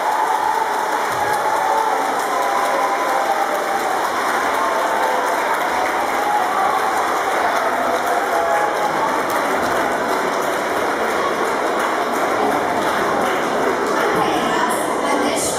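A large audience of children murmurs and chatters in an echoing hall.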